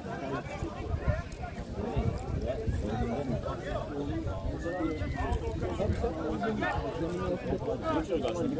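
A crowd of spectators chatters and talks close by outdoors.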